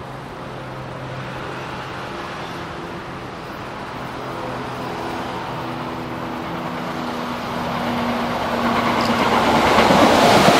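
An electric train hums as it approaches from a distance.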